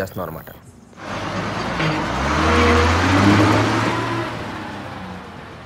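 A bus drives past with a low engine rumble.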